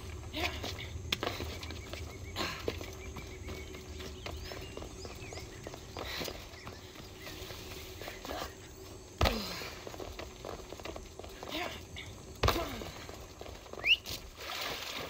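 Footsteps run and land on stone.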